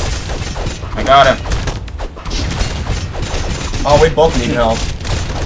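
Cartoon swords clash and thud in a busy game fight.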